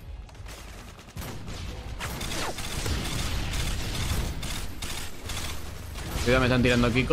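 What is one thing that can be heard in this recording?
Muffled gunshots pop in a video game.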